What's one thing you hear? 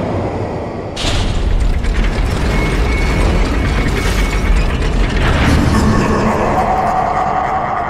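Flames roar steadily with a deep rumble.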